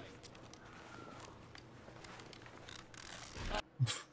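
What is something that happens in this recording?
Bandages rustle and tear as a wound is dressed.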